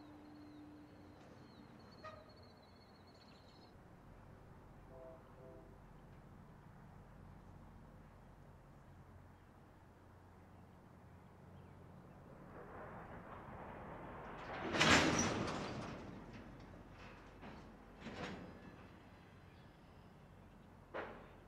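A long freight train rumbles steadily past.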